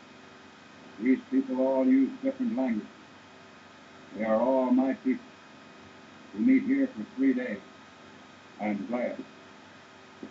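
An elderly man speaks slowly and calmly, close by.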